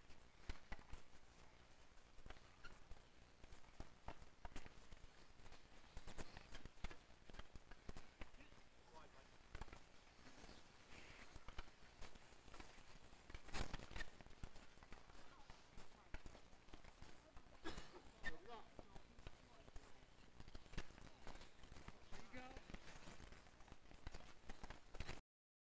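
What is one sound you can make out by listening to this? Hockey sticks clack and scrape on a hard court outdoors.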